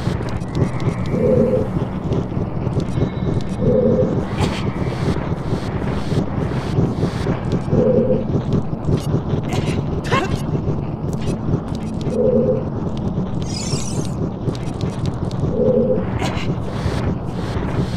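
A heavy stone block scrapes as it is pushed across a stone floor.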